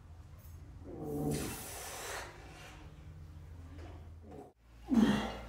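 A man grunts and breathes hard with effort close by.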